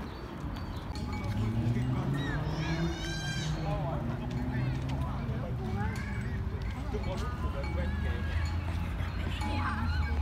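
Young children shout and squeal while playing nearby.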